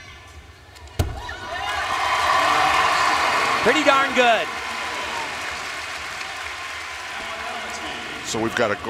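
A large crowd cheers and applauds loudly in a big echoing arena.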